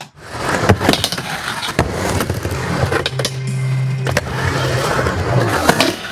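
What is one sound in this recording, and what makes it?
A skateboard clacks sharply against the edge of a ramp.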